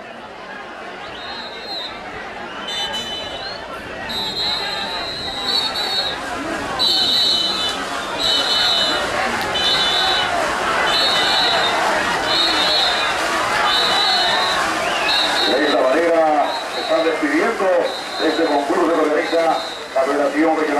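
A brass band plays a lively tune in the distance.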